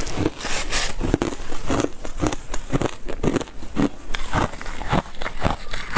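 A tissue rustles close to a microphone.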